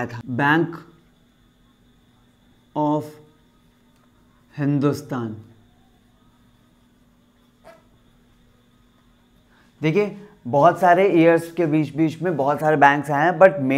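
A young man speaks calmly and close by, in short bursts with pauses.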